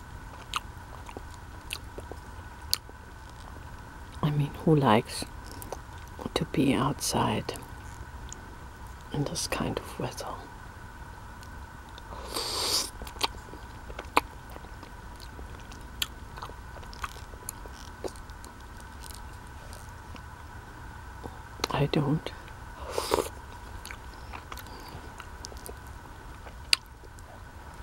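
A plastic spoon clicks and scrapes against a plastic cup.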